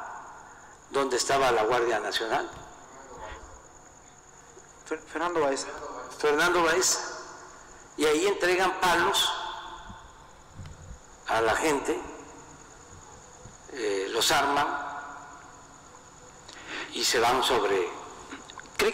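A young woman speaks calmly in short bursts, close to a microphone.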